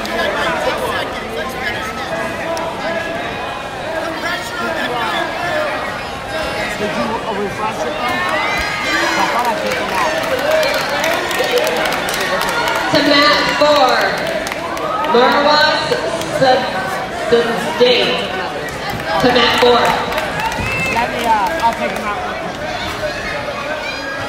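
A crowd in a large echoing hall chatters and shouts throughout.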